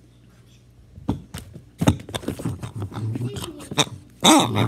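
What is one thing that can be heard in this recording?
A dog sniffs and bumps against the recorder close up.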